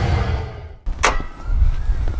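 A car hood latch clacks open.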